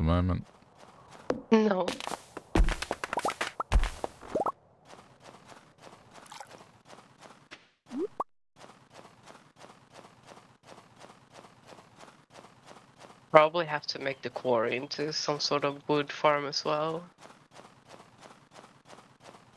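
Footsteps crunch steadily on snow.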